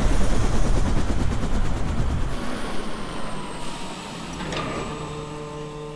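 A helicopter rotor whirs loudly.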